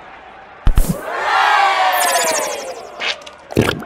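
A cartoon crowd cheers loudly after a goal.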